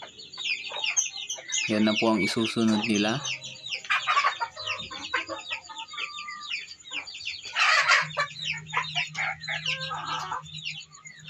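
Many chickens cheep and cluck close by.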